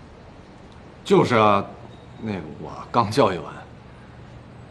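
A man answers, close by.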